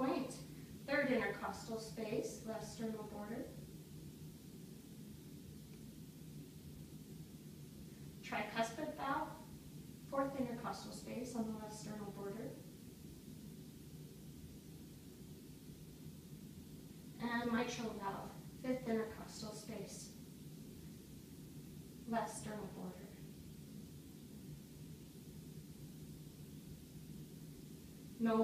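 A young woman speaks calmly and quietly nearby, in short bursts.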